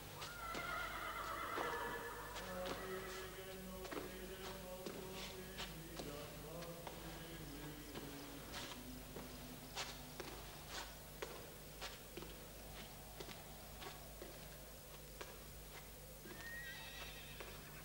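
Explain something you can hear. Footsteps tap slowly on a stone floor in an echoing hall.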